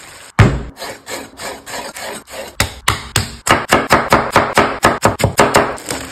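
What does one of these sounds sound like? A knife chops tomato.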